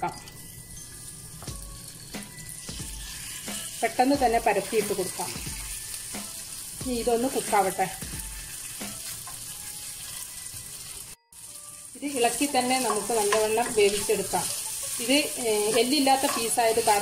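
Chicken sizzles in hot oil in a pan.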